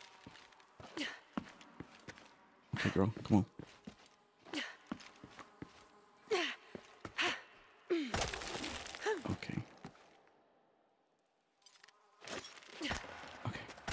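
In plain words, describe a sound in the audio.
Hands and boots scrape and knock against rock.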